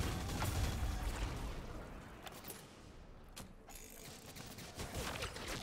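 A weapon reloads with a metallic clack.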